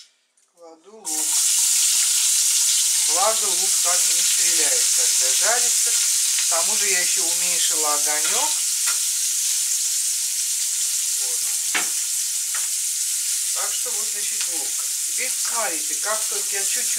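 Onions sizzle loudly in hot oil in a frying pan.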